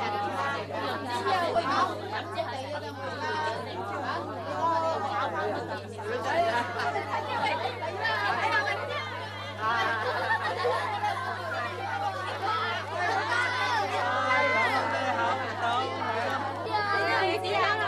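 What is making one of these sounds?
A crowd of adults and children chatter excitedly close by.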